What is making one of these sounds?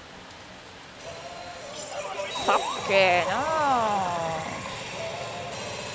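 A pachinko machine plays loud, dramatic sound effects.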